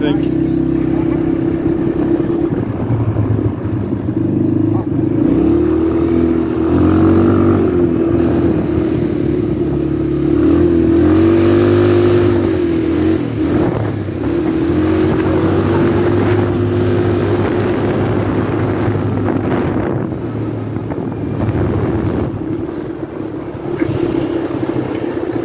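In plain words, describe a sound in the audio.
A small motor engine drones steadily and revs up and down.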